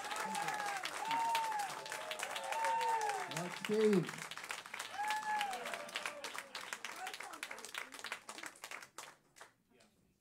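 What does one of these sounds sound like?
An audience claps and cheers loudly, then the applause dies away.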